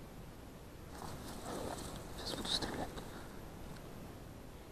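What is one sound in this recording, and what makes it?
Dry reeds rustle and swish nearby.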